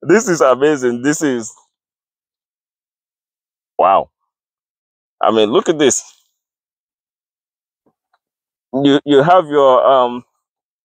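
A young man speaks with animation, close by, in short bursts with pauses.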